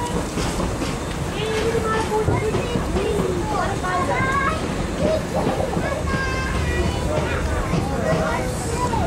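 A train rumbles and clatters steadily along.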